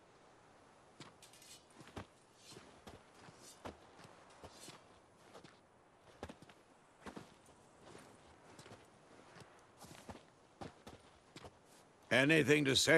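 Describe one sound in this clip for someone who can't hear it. Footsteps tread softly on a stone path.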